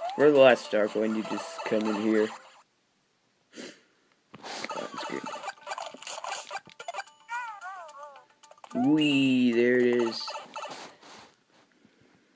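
Video game music and sound effects play from a small handheld speaker.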